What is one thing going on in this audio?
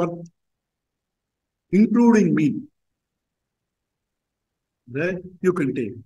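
An elderly man speaks calmly in short phrases over an online call.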